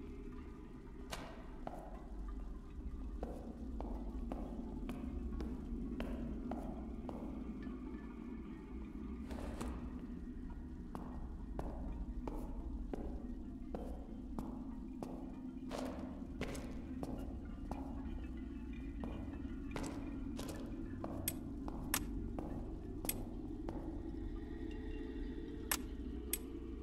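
Footsteps tread steadily on a stone floor.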